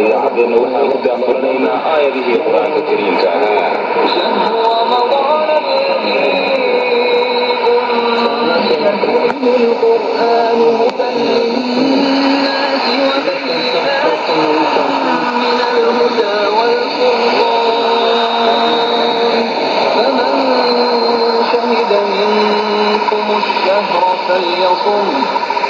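A shortwave radio plays music, thin and muffled through its small speaker.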